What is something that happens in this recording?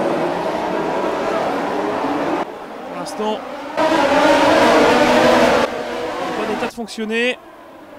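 Many racing car engines roar loudly together.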